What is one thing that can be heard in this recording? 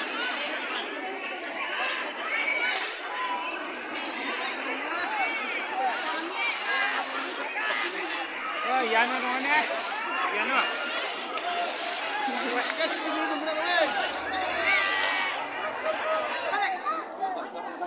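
Water splashes as many people wade through a shallow river.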